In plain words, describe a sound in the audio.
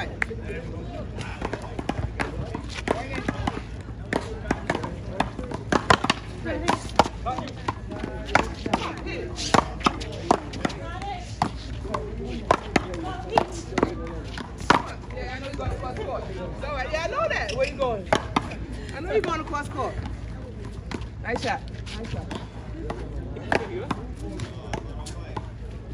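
Paddles smack a small ball back and forth, echoing off a wall outdoors.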